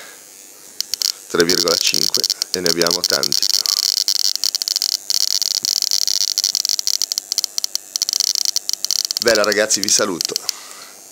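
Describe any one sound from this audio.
A glowing vacuum tube gives off a steady high electrical buzz.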